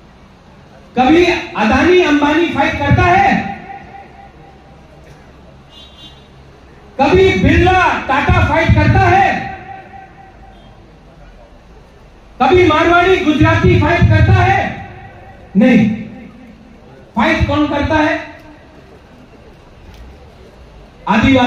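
A young man speaks loudly and forcefully through a microphone and loudspeakers, in bursts with pauses, outdoors.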